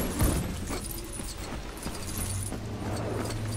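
Small coins jingle and clink as they scatter.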